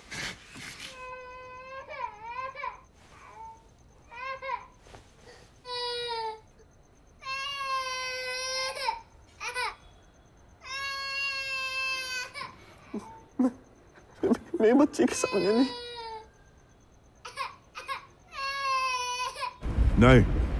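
A woman cries out and wails in distress.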